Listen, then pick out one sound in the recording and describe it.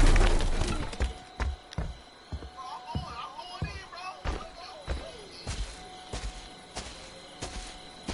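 Heavy footsteps thud across the ground.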